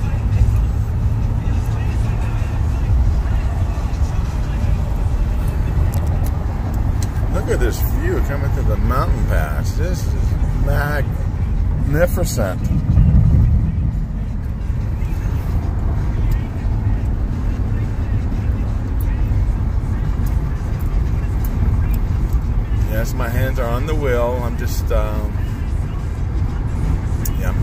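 A car's engine and tyres rumble steadily on a highway.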